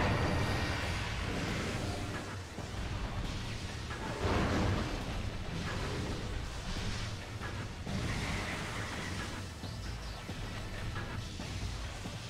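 Energy beams crackle and hum.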